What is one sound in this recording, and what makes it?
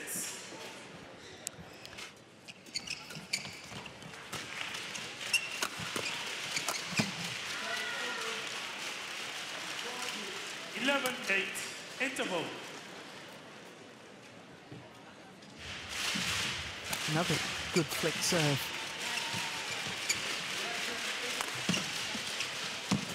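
Rackets strike a shuttlecock with sharp pops in a quick rally.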